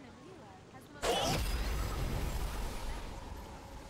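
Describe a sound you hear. A burst of fire flares with a loud whoosh.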